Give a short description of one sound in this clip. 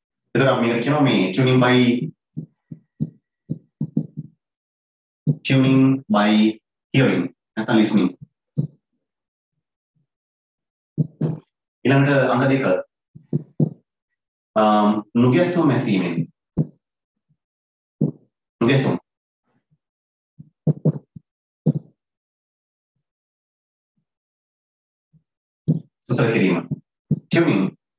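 A man speaks in a calm, lecturing voice close to a microphone, with pauses.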